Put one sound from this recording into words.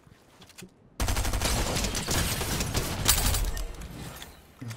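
Pistol shots crack in a video game.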